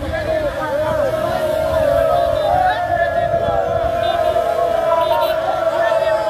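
A crowd of young men chants and sings loudly together.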